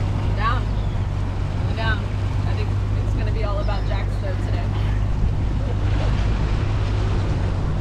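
A man talks casually nearby, outdoors in wind.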